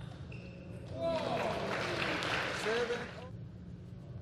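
Spectators clap and cheer.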